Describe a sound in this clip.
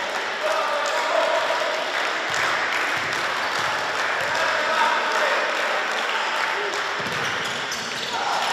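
Young players shout to each other across the court.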